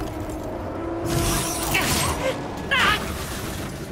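Heavy gunfire blasts from a giant machine.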